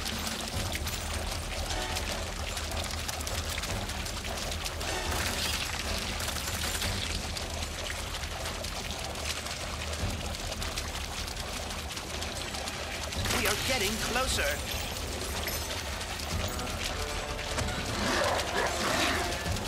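Water splashes and churns steadily.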